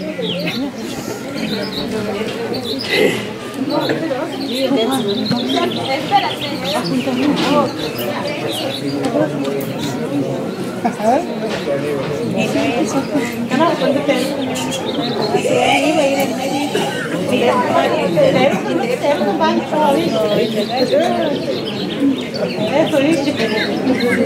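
A crowd of men and women chatters all around, close by.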